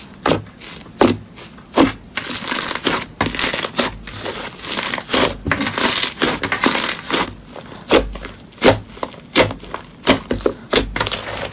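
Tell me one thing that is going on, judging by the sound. Hands knead and stretch fluffy slime, which pops and squelches.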